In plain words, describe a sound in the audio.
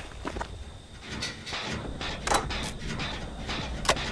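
Metal parts of a machine clank and rattle as someone works on it.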